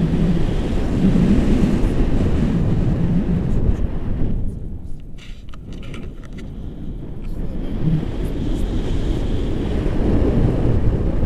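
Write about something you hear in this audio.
Wind rushes loudly past outdoors, dipping for a few seconds midway.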